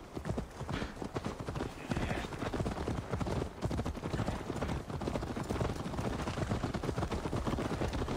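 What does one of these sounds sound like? Horses' hooves clop steadily on a dirt path.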